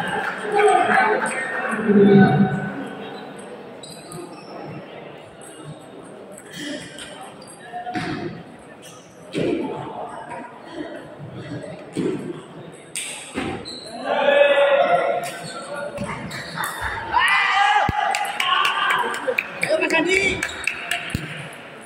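Men talk and call out in an echoing hall.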